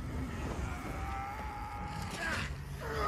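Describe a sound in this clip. An energy beam blasts with a loud roar.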